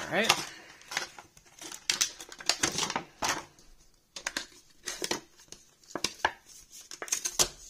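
A hard phone case clicks and snaps as it is fitted.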